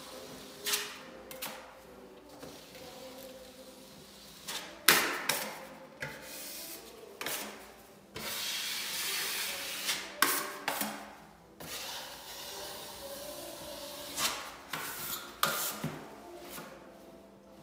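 A putty knife scrapes and taps against a metal hawk.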